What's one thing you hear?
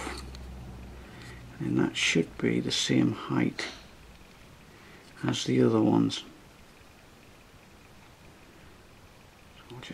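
Small plastic parts click and rattle as they are fitted together.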